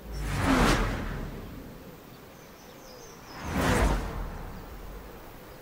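A car engine revs loudly in short bursts.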